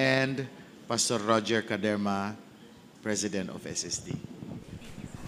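A man speaks into a microphone, reading out calmly.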